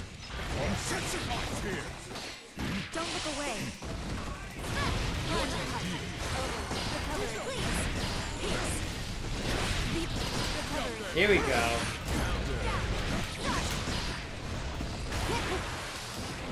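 Video game fight sounds and music play through a loudspeaker.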